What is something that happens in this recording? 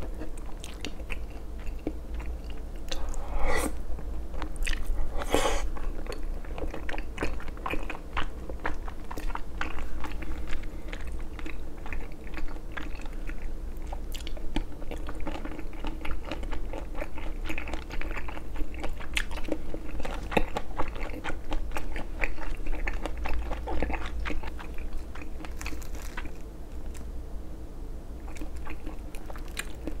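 A young man chews and slurps food noisily close to a microphone.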